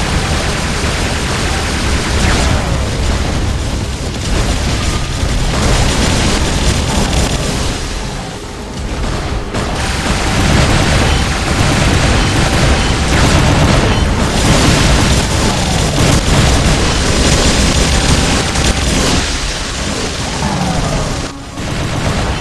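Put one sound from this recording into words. Heavy robot footsteps stomp and clank steadily.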